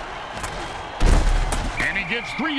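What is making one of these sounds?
Football players collide with a heavy thud.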